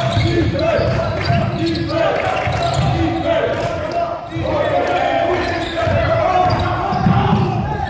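A basketball bounces with hollow thumps.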